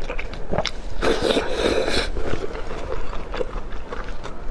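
Wet, sticky food squelches as it is pulled from a skewer.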